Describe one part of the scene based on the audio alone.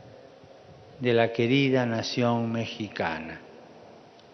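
An elderly man speaks slowly into a microphone, heard over loudspeakers.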